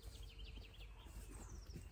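Footsteps crunch on dry leaves nearby.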